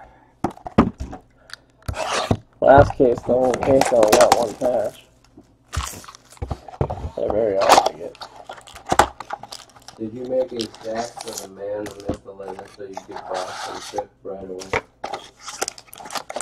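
Cardboard rustles and scrapes as a box is handled and opened.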